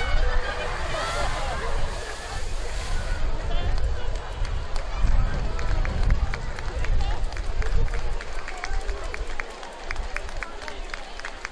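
Water sloshes and churns in a big pool.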